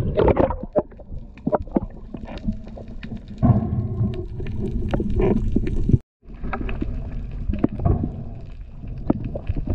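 Water swishes and rumbles, heard from underwater.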